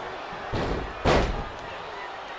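A heavy body thuds onto a wrestling mat.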